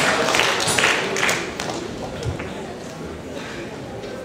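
A young boy speaks through a microphone.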